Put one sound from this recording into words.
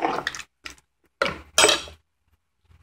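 A metal ladle scrapes and clinks against a pot while stirring.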